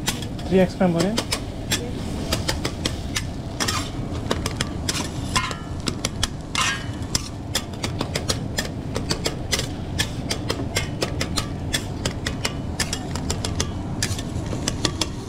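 Metal spatulas scrape and clatter on a hot griddle.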